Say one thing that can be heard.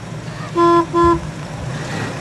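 A car horn beeps twice.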